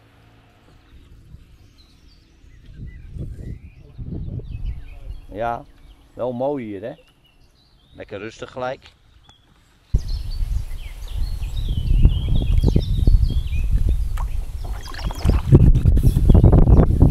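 A kayak paddle dips and splashes in calm water.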